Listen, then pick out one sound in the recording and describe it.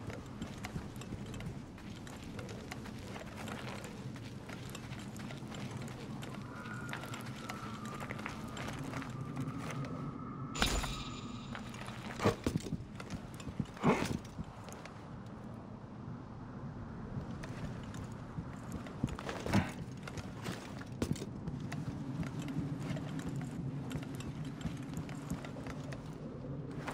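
Footsteps crunch and scrape on rock.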